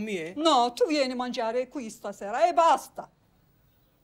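A middle-aged woman speaks firmly and insistently up close.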